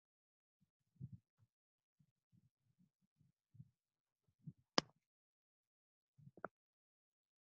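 A headset microphone bumps and rustles as it is handled.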